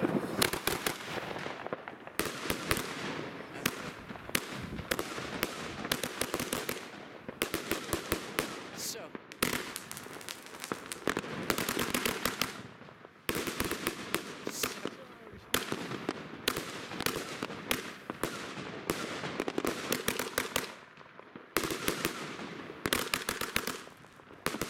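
Rockets whoosh and hiss as they shoot up.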